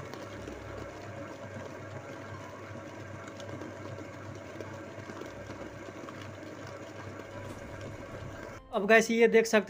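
An electric stand mixer whirs steadily as its beater churns thick batter.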